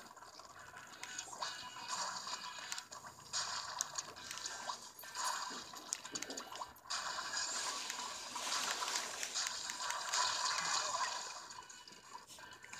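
Ink guns spray and splatter in a video game.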